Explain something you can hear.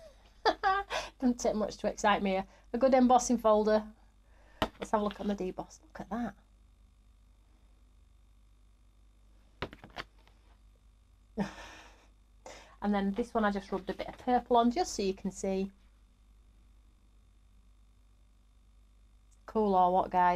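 A woman talks calmly and cheerfully into a close microphone, in bursts with pauses.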